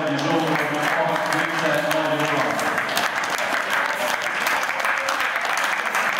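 A crowd applauds in a large echoing hall.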